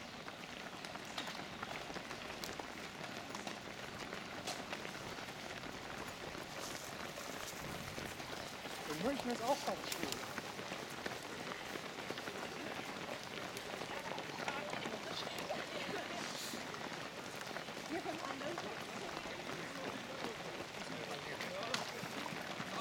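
Many running shoes patter and slap on paving stones outdoors.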